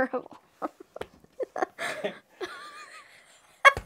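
A boy laughs and giggles.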